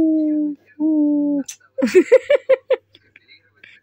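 Baby raccoons squeal and chirp in high, thin cries.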